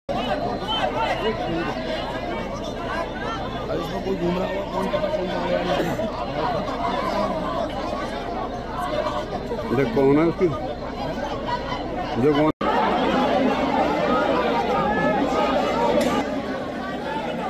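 A crowd of men talks and calls out outdoors.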